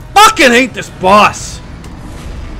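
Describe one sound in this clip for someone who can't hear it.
A young man shouts and groans into a microphone.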